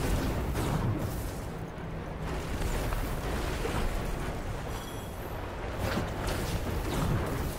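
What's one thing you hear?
A fiery explosion bursts with a crackling roar.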